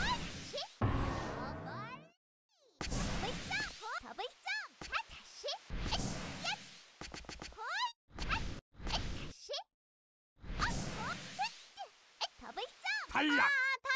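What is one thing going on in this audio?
Electronic whooshes and zaps burst out in quick succession.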